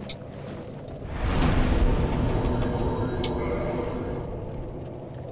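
A warp whooshes with a rushing roar.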